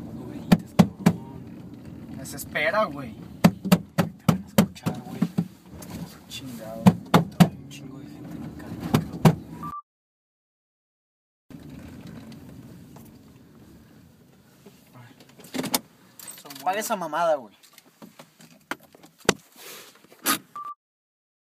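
Thumps and knocks sound inside a car.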